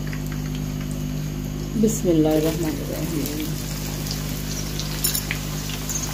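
Sliced onions drop into hot oil with a loud sizzle.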